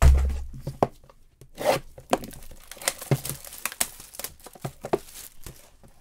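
Cardboard boxes tap and knock against each other.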